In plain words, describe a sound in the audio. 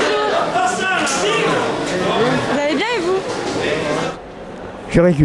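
An elderly man talks cheerfully up close.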